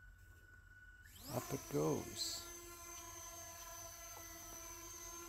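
A small drone's motors spin up with a rising whine, then hum steadily.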